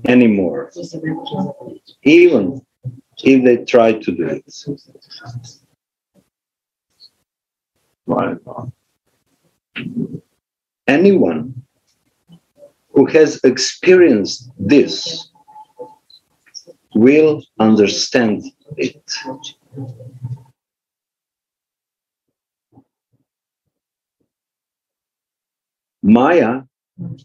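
An elderly man speaks calmly and slowly in bursts with long pauses, heard close through a microphone on an online call.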